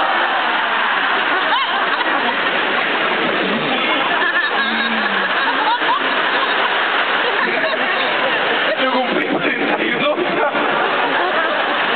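A man sings into a microphone over loud speakers in a large echoing hall.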